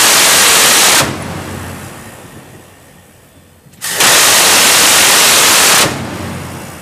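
A rapid-fire gun lets off a loud, buzzing burst of rounds.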